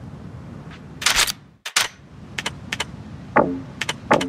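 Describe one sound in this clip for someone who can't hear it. Menu clicks sound as items are browsed.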